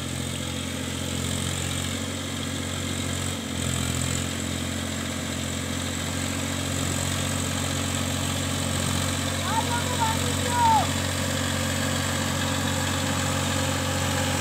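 Wet mud churns under a tractor's wheels.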